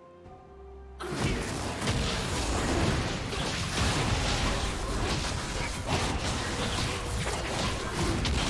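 Game fighting effects crackle and burst in quick succession.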